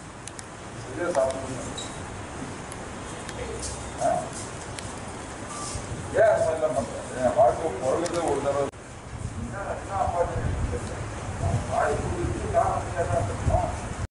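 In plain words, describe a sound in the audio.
Several men talk nearby.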